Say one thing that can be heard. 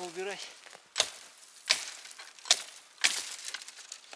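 An axe chops into wood with sharp thuds.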